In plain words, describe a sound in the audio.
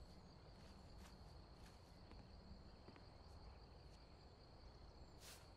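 A broom sweeps across a wooden floor.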